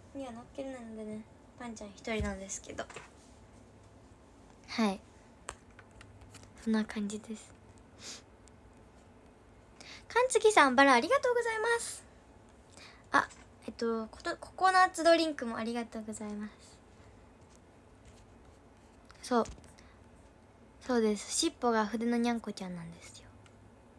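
A girl speaks brightly and close, in bursts with pauses.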